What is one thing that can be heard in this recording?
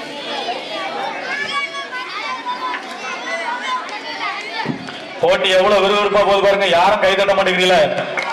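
Music with singing plays over a loudspeaker outdoors, getting louder partway through.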